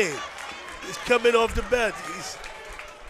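A small crowd cheers and calls out from the stands.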